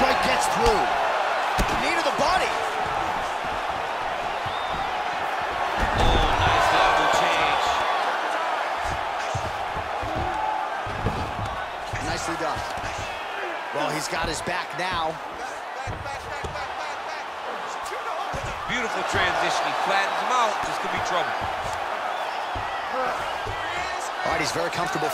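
A large arena crowd roars and cheers steadily.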